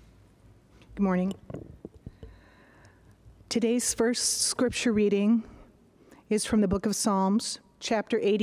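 A woman reads aloud calmly through a microphone in an echoing room.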